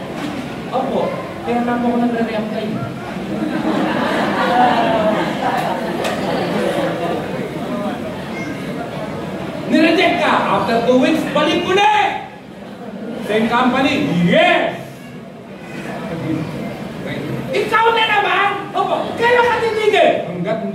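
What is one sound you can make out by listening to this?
A middle-aged man speaks with animation through a microphone and loudspeakers in an echoing hall.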